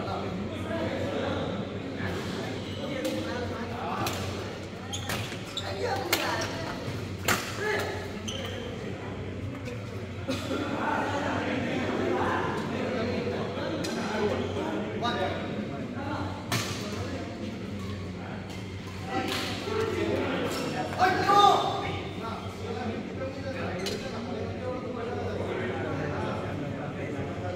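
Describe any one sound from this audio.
Men call out and talk across the hall.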